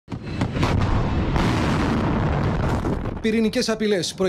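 A missile explodes with a deep, rumbling blast.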